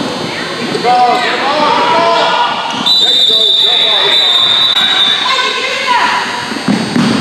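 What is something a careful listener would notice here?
Spectators call out from the stands in an echoing gym.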